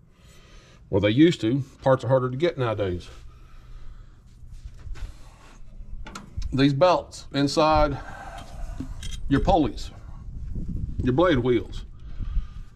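An elderly man talks calmly up close.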